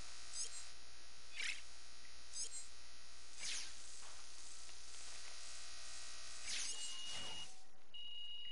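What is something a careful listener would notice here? Soft whooshes sweep past as menu items slide in.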